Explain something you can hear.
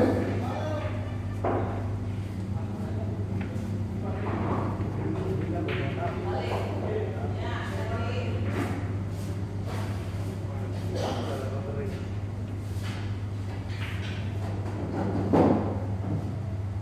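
Billiard balls knock together with a click.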